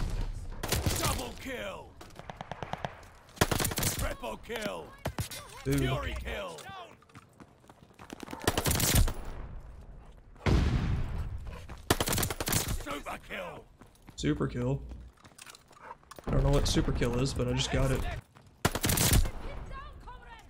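Submachine gun fire rattles in rapid bursts.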